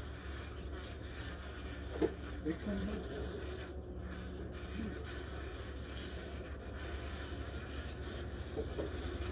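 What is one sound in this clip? Wasps buzz softly close by.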